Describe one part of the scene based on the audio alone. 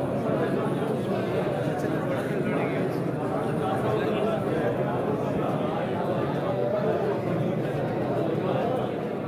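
A crowd of men talk and murmur close by in an echoing room.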